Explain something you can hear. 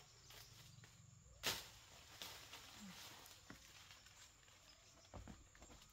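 Leaves rustle as branches are pulled.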